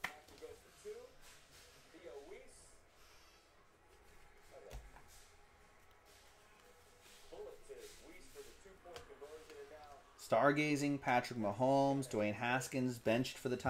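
Plastic card cases and cards rustle and click in hands.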